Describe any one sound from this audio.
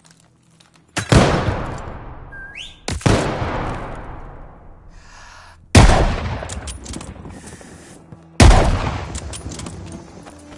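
A rifle fires loud single shots that echo and fade.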